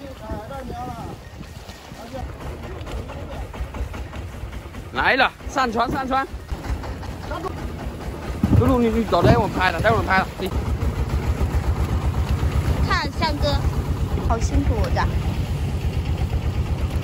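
A boat engine chugs steadily nearby.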